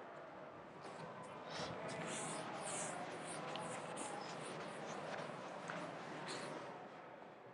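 A cloth duster rubs across a chalkboard.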